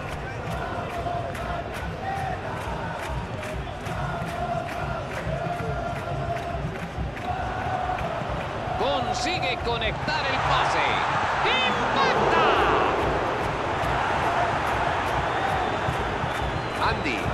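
A large stadium crowd murmurs and chants, then swells into a louder roar.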